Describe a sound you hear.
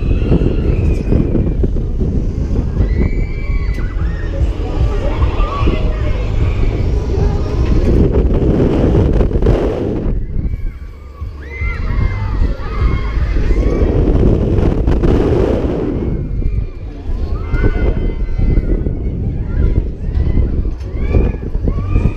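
Wind roars and buffets loudly outdoors.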